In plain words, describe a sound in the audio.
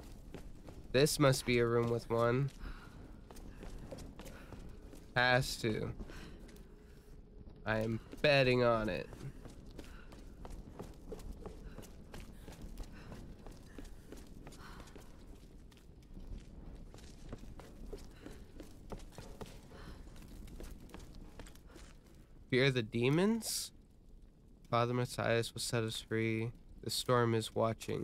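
Footsteps scuff on a hard gritty floor.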